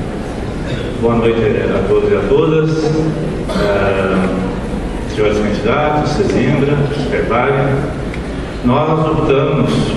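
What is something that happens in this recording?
A man speaks steadily into a microphone, heard over a loudspeaker in a large room.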